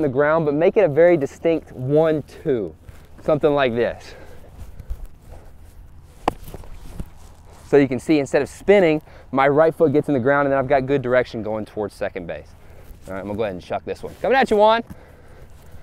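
A young man talks calmly and clearly into a microphone.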